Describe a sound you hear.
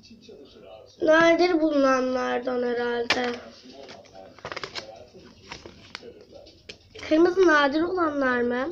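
Cardboard packaging rustles and crinkles in a girl's hands.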